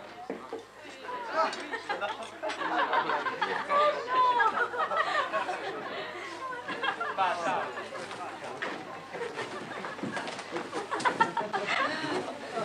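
A crowd of men and women chatter and laugh at a party.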